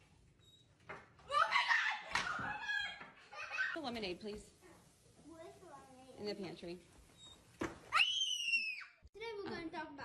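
A young girl screams loudly.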